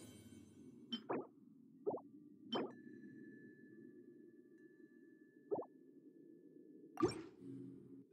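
Soft menu clicks sound several times.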